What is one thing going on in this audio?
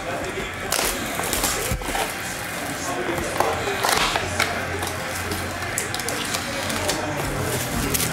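Cardboard scrapes and rustles as a box is opened.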